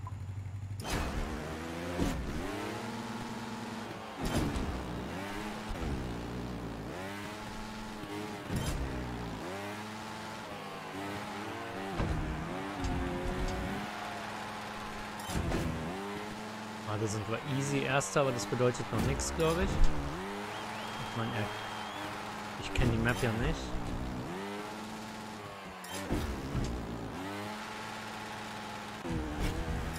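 A motorbike engine revs up and down in quick bursts.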